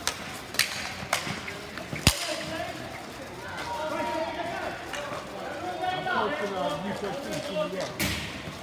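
Hockey sticks clack sharply against a ball.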